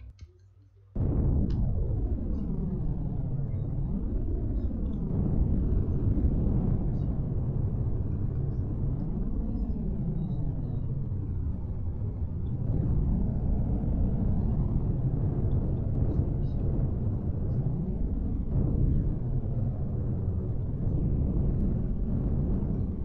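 A hovering spacecraft's engines roar with a deep, wavering hum.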